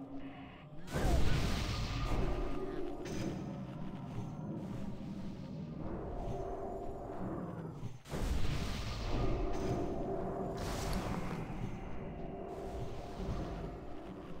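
Game spells whoosh and shimmer in bursts.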